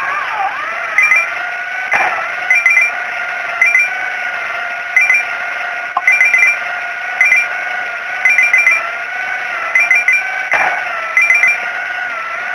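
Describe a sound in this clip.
Coins chime quickly in short bursts as they are collected.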